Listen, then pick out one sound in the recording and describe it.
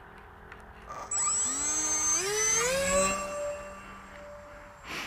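A model plane's electric motor whirs up to speed with a rising whine.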